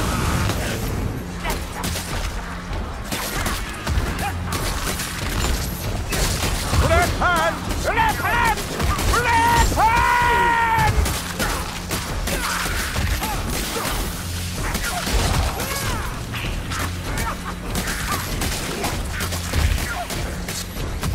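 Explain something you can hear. Blades strike and slash into flesh with repeated heavy thuds.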